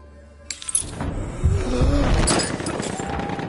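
A loud explosion booms and rumbles close by.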